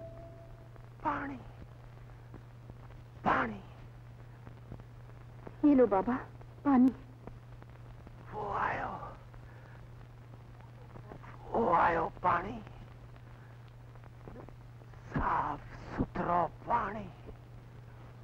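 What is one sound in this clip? A woman speaks tearfully in short broken bursts, close by.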